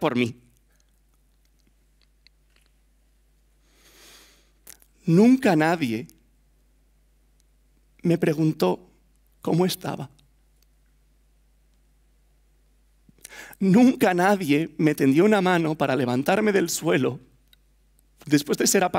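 A young man speaks with animation through a headset microphone, in short bursts with pauses.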